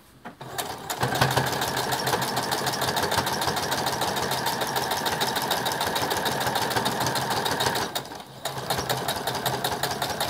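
A sewing machine whirs and stitches rapidly, pausing briefly.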